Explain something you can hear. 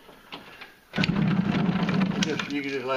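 An electric motor starts up and hums steadily with a loud whir.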